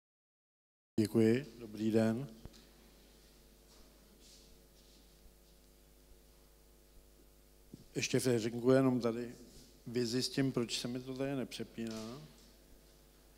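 A man speaks to an audience through a microphone, with animation, in an echoing room.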